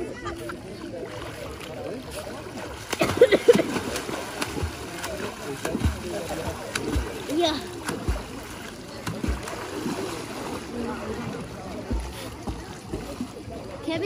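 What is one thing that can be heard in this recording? Water splashes loudly as a child jumps in and swims.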